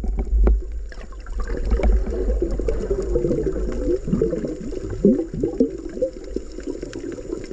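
Air bubbles from a diver's breathing gurgle and burble underwater.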